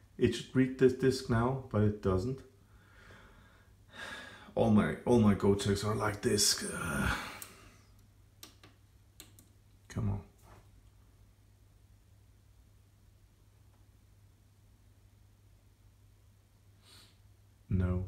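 A plug is pushed into a socket with a soft click.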